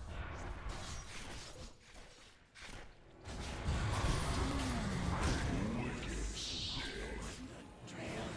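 Game sound effects of fighting clash and crackle.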